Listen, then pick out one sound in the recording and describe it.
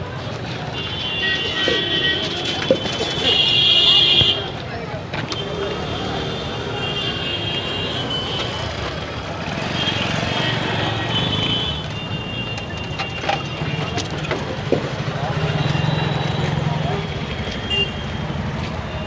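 Vehicle horns honk repeatedly.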